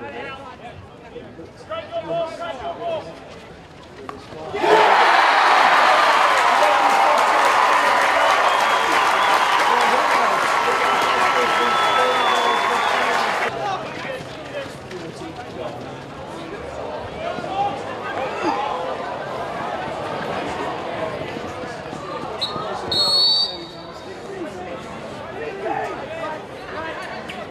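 A hockey stick strikes a ball with a sharp crack.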